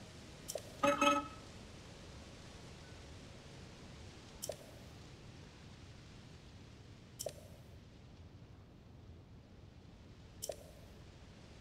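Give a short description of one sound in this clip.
A short, soft chime sounds several times.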